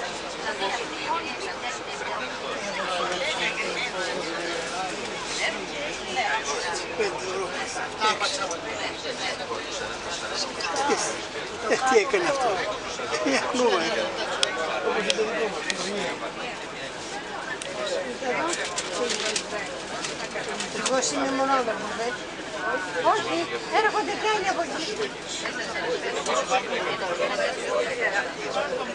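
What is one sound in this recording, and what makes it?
A bus engine hums steadily while the bus drives.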